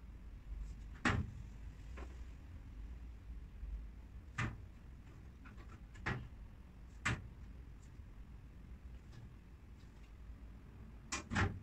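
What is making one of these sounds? Wooden cabinet panels knock and bump together.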